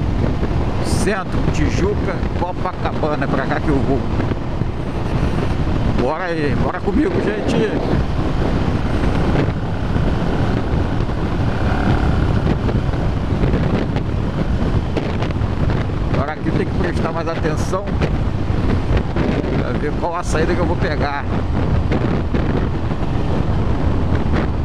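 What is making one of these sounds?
Wind buffets loudly and roars past throughout.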